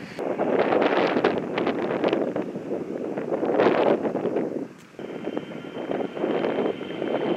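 Strong wind buffets the microphone in gusts outdoors.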